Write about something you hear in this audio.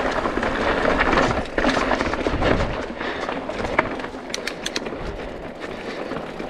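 Bike tyres rumble and clatter over rocky ground.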